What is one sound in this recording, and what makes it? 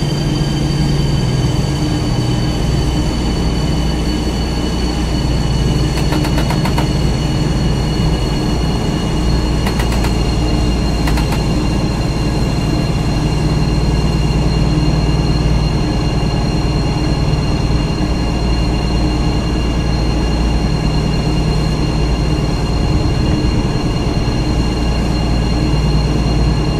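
A train engine hums and rumbles steadily.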